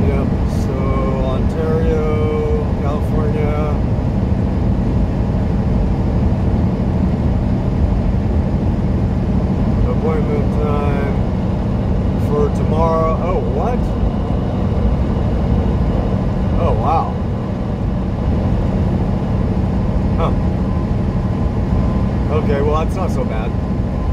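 A truck engine drones steadily while driving on a highway.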